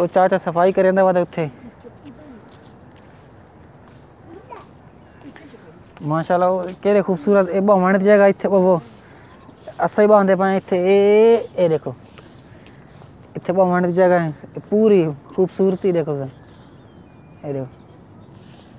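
A young man speaks calmly close to the microphone, outdoors.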